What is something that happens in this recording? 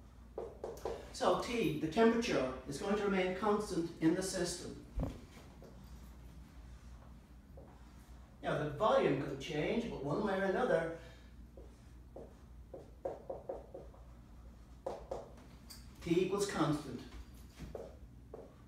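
An elderly man lectures calmly.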